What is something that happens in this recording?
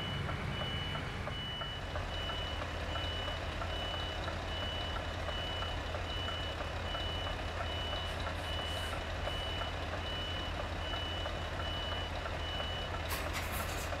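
A truck's reversing alarm beeps at an even pace.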